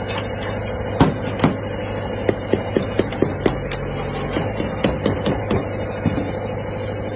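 A metal rod taps and thuds into wet concrete in a bucket.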